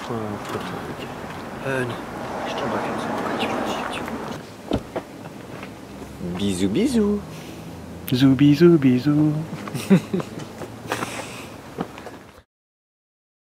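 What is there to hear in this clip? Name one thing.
Several young men talk and laugh together close by.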